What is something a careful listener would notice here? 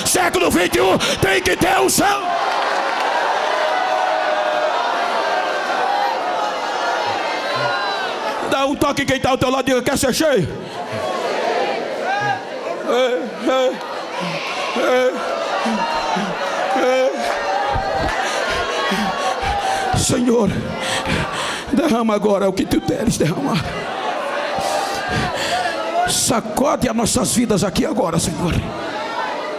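A man preaches loudly and passionately through a microphone in a large echoing hall.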